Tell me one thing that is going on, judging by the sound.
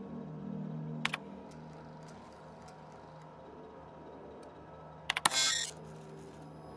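Electronic menu blips and chirps sound in short bursts.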